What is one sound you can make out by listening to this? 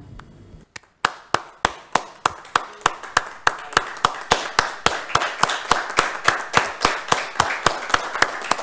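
Hands clap steadily and quickly nearby.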